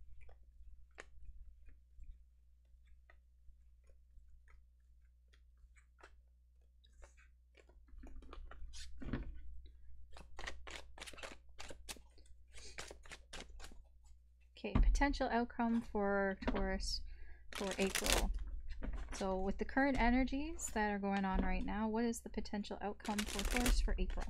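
Playing cards slide and tap together as they are shuffled by hand.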